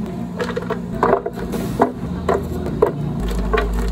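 Soft fruit pieces drop into a plastic blender jar with dull thuds.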